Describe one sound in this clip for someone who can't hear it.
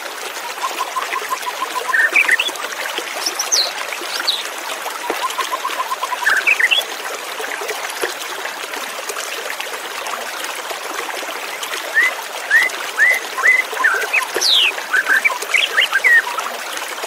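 A white-rumped shama sings in rich, varied phrases.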